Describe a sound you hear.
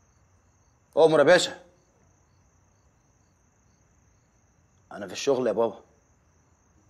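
A young man speaks briefly into a phone in short bursts, close by.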